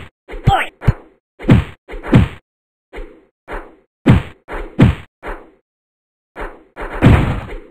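Punches and kicks land with heavy, booming thuds in quick bursts.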